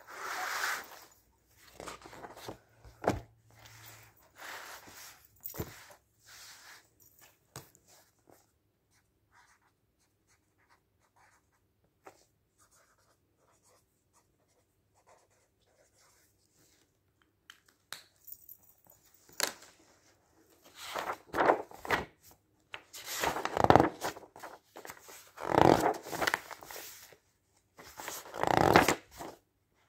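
Paper pages rustle and flap as magazines are handled and leafed through.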